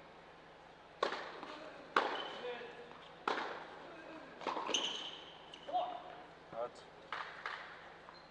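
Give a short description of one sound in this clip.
A tennis ball is struck hard with a racket, back and forth in a rally, in a large echoing hall.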